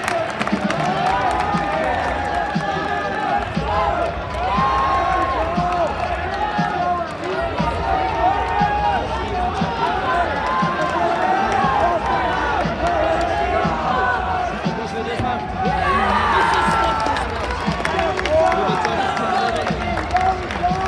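A crowd of young men cheers and shouts loudly in a large echoing hall.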